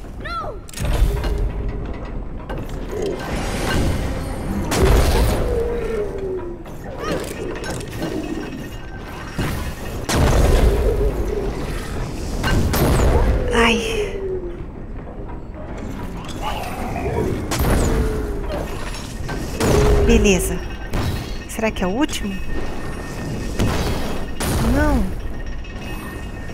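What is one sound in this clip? Shells crash and boom on impact.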